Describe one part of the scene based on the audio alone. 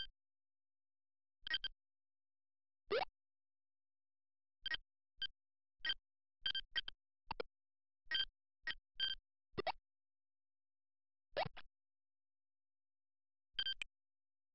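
Short electronic chimes beep again and again.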